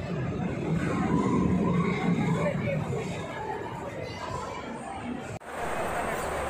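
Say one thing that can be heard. A crowd of men and women chatter in a busy, echoing indoor space.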